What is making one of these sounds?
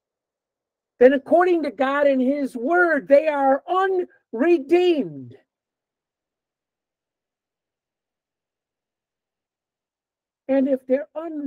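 An elderly man speaks with animation over an online call.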